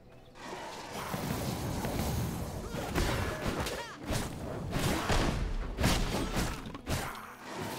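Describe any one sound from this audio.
Weapons clash and strike in a fight, with sharp hits.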